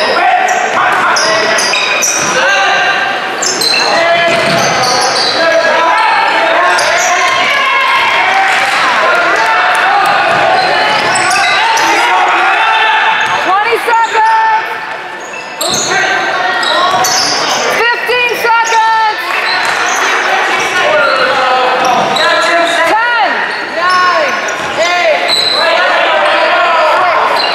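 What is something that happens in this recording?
A crowd of spectators talks and shouts throughout.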